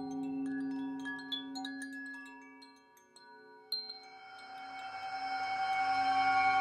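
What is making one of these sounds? A metal singing bowl rings with a long, shimmering tone.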